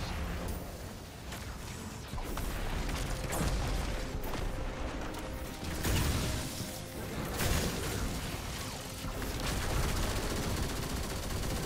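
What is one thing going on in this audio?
Game gunfire and explosions crack and boom repeatedly.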